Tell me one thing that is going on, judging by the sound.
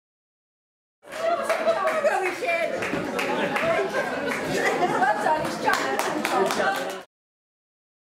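Several elderly men and women chat and laugh together nearby.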